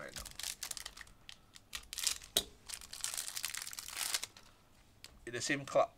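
Plastic wrapping crinkles and tears as a pack is opened.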